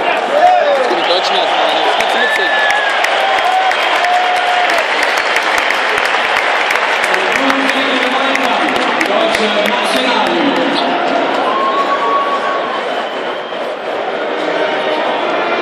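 A large crowd sings together in a large stadium.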